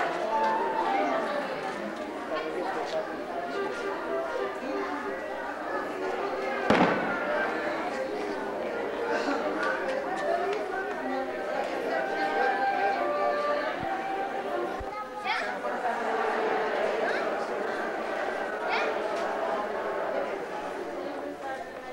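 A crowd of people murmurs in a large echoing hall.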